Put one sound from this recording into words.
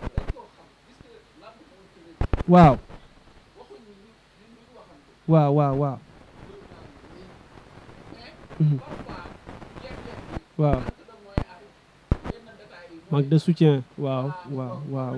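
A young man speaks into a microphone in bursts, with pauses between phrases.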